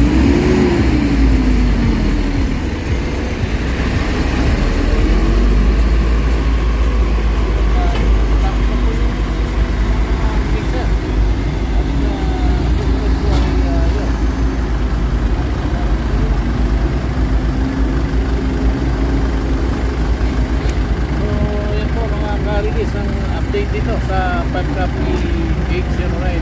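A man talks outdoors near the microphone.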